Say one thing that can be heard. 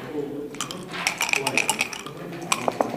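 Dice rattle and tumble across a wooden board.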